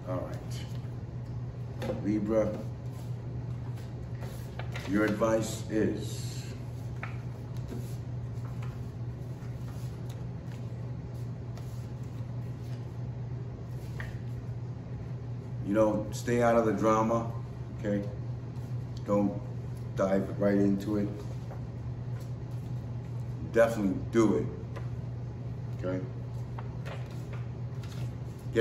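Paper rustles as a man handles cards.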